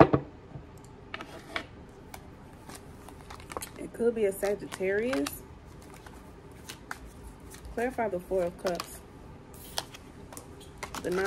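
Cards shuffle and riffle in hands.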